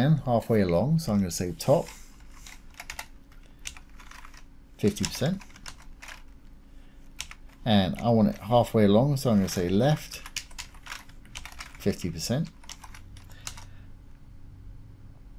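Keys on a keyboard click as someone types.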